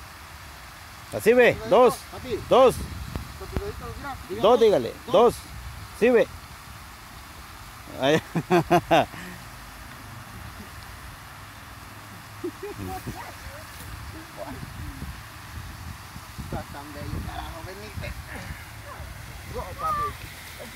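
A fountain splashes steadily nearby.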